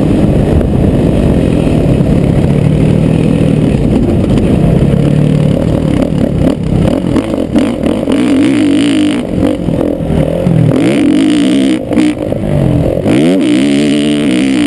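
A dirt bike engine revs hard and close, rising and falling in pitch.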